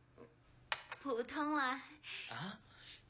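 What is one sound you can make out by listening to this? A young woman speaks softly and sweetly nearby.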